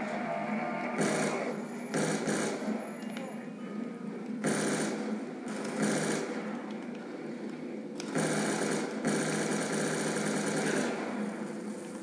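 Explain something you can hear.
Video game gunfire bursts out in loud rapid volleys through a television speaker.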